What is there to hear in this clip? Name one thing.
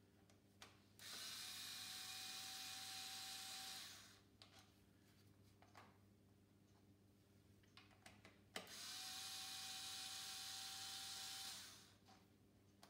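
A cordless power tool whirs in steady bursts.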